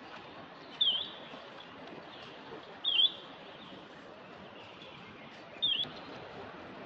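A baby monkey gives short, high squeaks.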